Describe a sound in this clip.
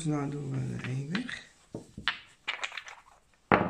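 Plastic dice click and knock against each other as they are picked up.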